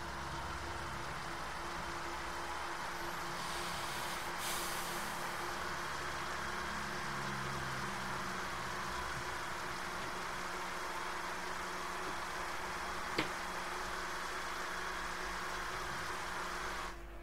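A jet airliner's engines roar steadily as it climbs.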